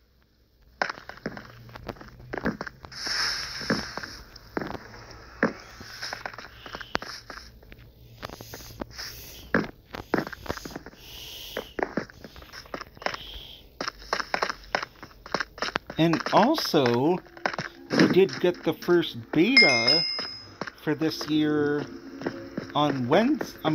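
Footsteps tap quickly on hard ground.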